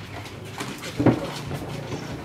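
A wooden crate thuds as it is set down.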